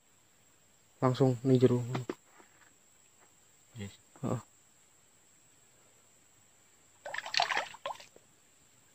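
An adult man speaks in short bursts close by.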